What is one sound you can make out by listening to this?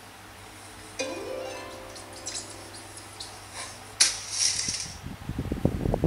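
A tablet game plays bright chiming and sparkling sound effects.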